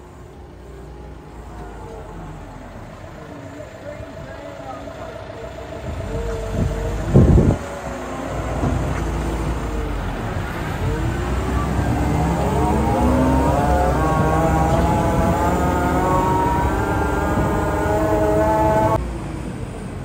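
A tractor engine rumbles and revs up close.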